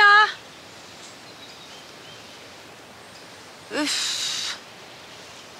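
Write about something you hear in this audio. A young woman calls out loudly outdoors.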